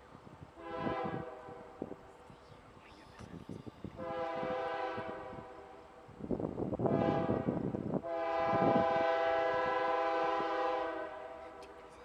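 A train horn blows several long blasts in the distance.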